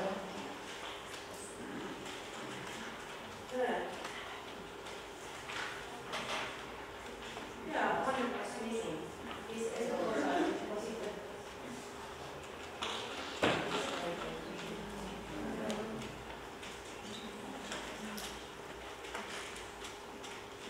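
A middle-aged woman speaks calmly into a microphone in a room with some echo.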